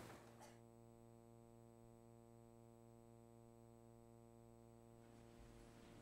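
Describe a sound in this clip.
An organ holds a steady chord and then stops.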